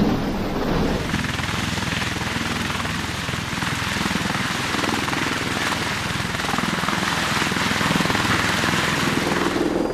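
Aircraft rotors thump and roar as the aircraft lifts off.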